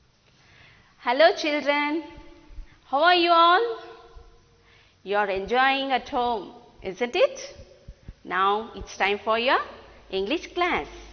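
A woman speaks clearly and warmly into a microphone.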